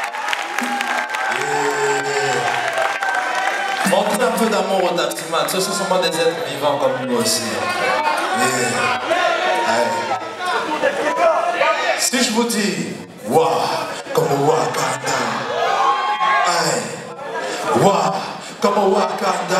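A band plays music along with the singing.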